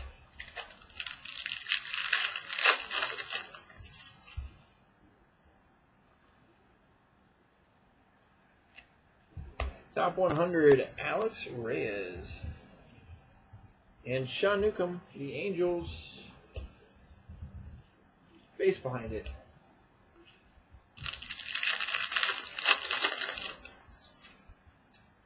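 A foil wrapper crinkles and rustles as hands handle it.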